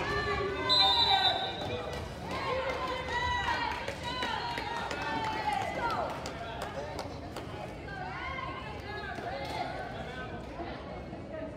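Players shout to each other in a large echoing gym.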